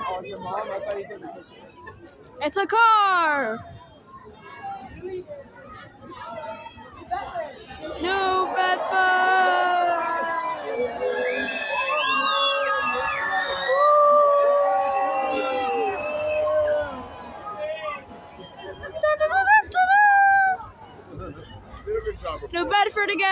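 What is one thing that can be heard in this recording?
A large outdoor crowd chatters loudly.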